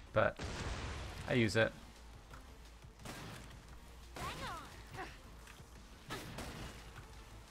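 Shotgun blasts boom one after another.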